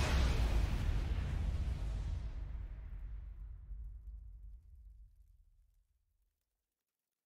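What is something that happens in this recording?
A deep, booming game fanfare rings out and slowly fades to silence.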